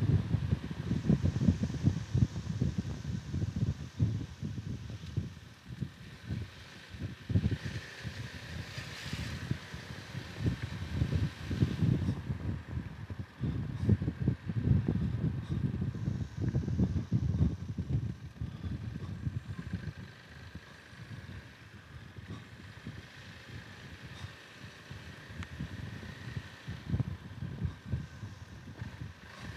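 Wind buffets and rumbles against the microphone as a motorcycle rides.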